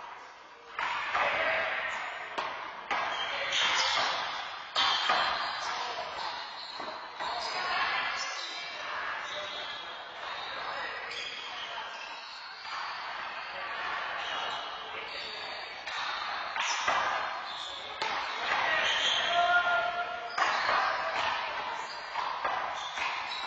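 A small ball smacks sharply against a wall and floor, echoing in a hard-walled hall.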